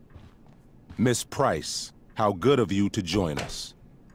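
A man speaks sternly.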